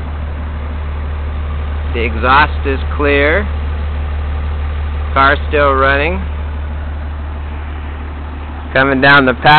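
An engine idles with a steady low rumble from the exhaust.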